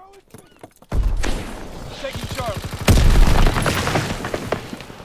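A submachine gun fires rapid bursts close by.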